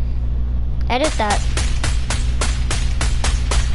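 Rapid gunshots crack in quick succession.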